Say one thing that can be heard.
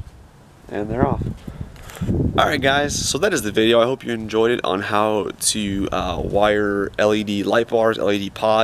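A young man talks calmly and close up.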